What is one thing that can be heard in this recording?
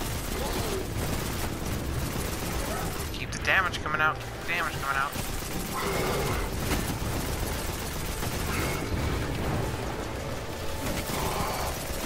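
Rapid gunfire rattles throughout.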